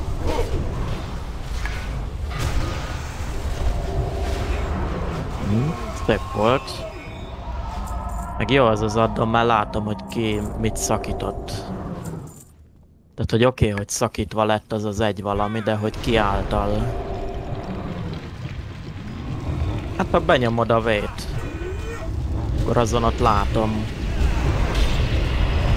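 Combat sounds of crackling spells play throughout.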